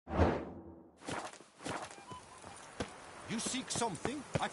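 Footsteps walk along a stone path.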